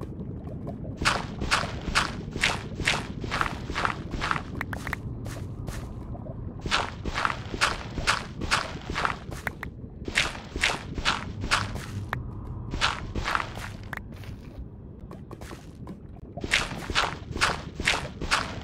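A pickaxe chips rapidly at stone, with blocks crumbling and breaking.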